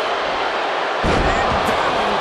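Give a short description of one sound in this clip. A body crashes down onto a wooden table with a heavy thud.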